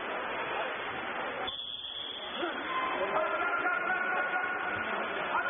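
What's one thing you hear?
Water splashes and churns as swimmers thrash in an echoing indoor pool.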